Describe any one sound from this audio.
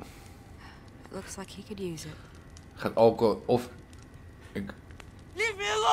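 A young woman speaks in a worried voice, close by.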